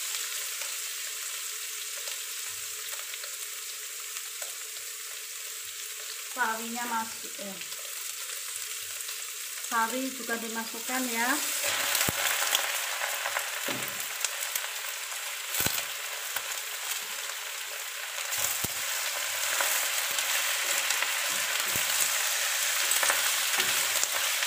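Food sizzles in a hot pan, growing louder after a while.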